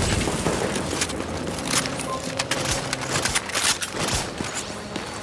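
Gunshots crack in quick bursts nearby.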